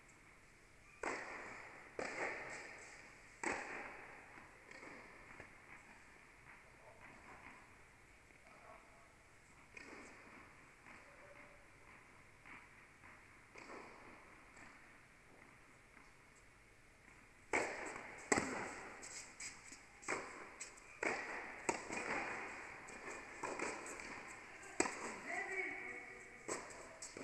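Tennis balls bounce on the court.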